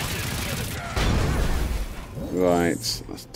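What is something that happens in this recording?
A blast booms and rumbles.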